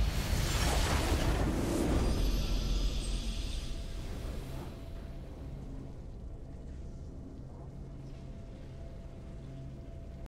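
A triumphant fanfare swells as the match ends.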